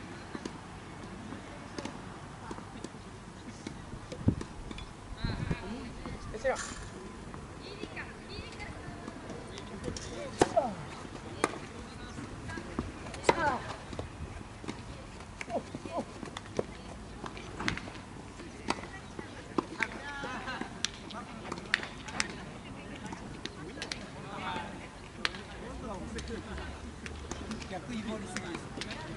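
Tennis balls are struck with rackets, with sharp pops outdoors.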